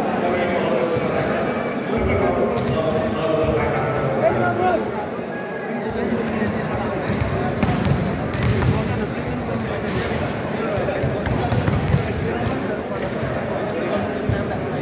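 A large crowd chatters and cheers, echoing in a big indoor hall.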